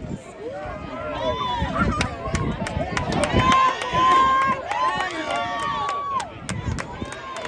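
A crowd of spectators cheers and shouts excitedly nearby.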